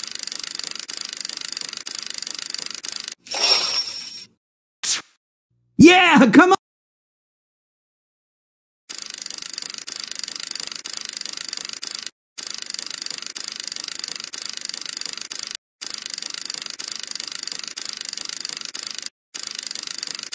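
Slot machine reels spin with rapid electronic clicking.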